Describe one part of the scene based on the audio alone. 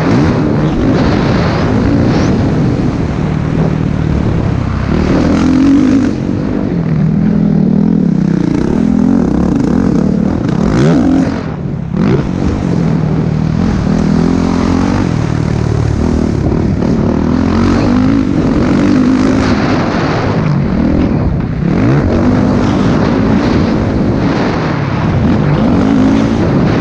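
Wind rushes loudly past outdoors.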